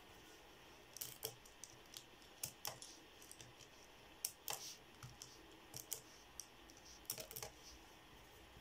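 Fingers tap the buttons of a calculator with quick clicks.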